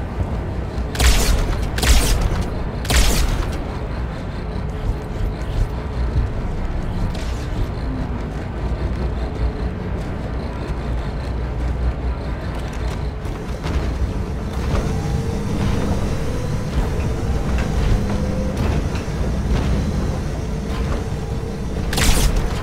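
A rifle fires sharp, loud cracks now and then.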